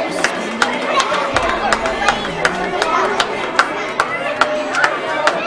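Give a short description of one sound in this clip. A crowd of children claps in a steady rhythm.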